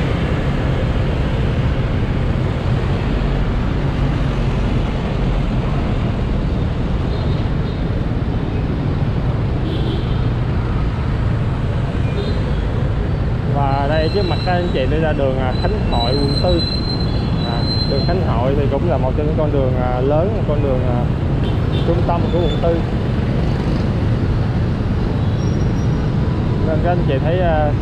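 A motorbike engine rumbles steadily while riding.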